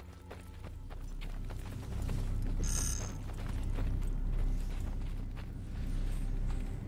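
A weapon fires with a loud fiery whoosh and a deep rumble.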